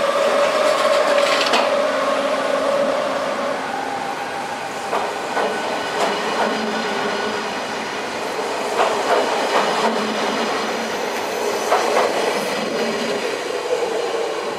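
A passenger train rolls past close by, its wheels clacking over rail joints.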